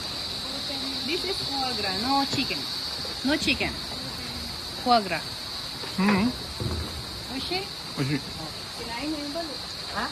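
An elderly man talks close by.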